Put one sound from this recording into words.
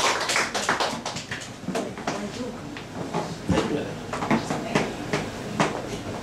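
A plastic cup is set down on a table.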